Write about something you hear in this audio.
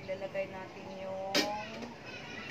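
Metal tongs clink against a metal ring.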